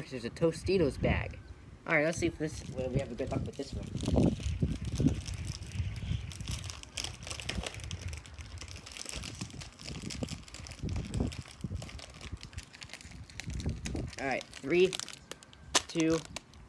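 A chip bag crinkles in a hand.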